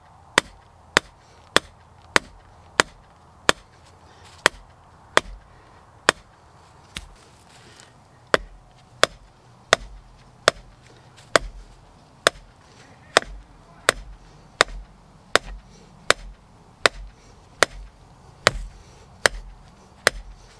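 A hammer strikes a metal stake with sharp, ringing blows at a steady pace.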